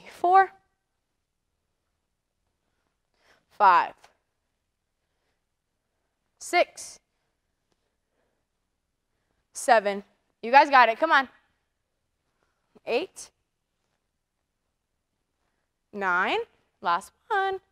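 A young woman speaks calmly in short phrases into a close microphone, with long pauses between them.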